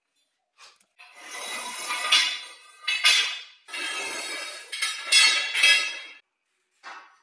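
Metal pipes clang and rattle against a hard floor.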